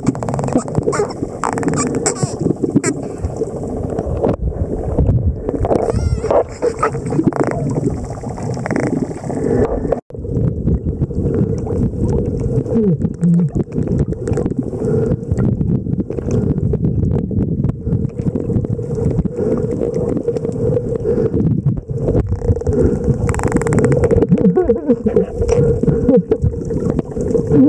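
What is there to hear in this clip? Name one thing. Dolphins make rapid clicking sounds.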